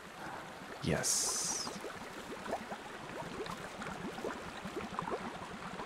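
Water trickles gently in a shallow pool.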